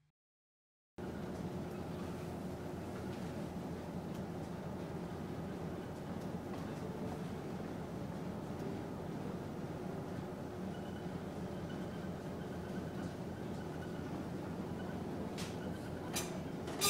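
Water churns and rushes loudly in a ship's wake.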